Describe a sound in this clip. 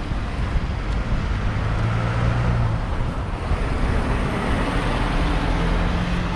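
A truck rumbles past close by.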